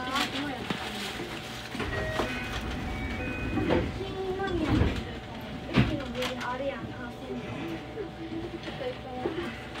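People chatter on a station platform nearby.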